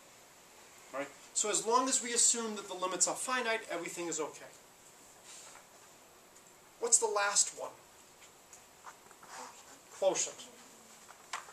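A man lectures calmly.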